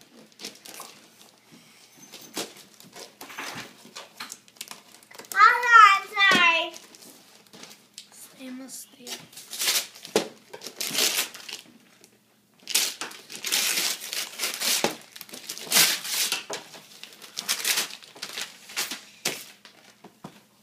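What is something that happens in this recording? Wrapping paper crinkles and tears as a gift is unwrapped.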